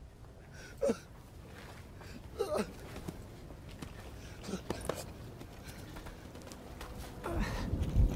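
A man groans and breathes heavily.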